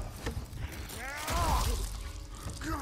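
A heavy axe hacks into a body with a wet thud.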